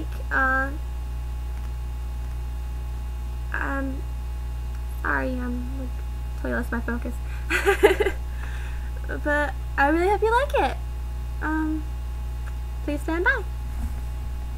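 A young woman talks close to a microphone, in a chatty way.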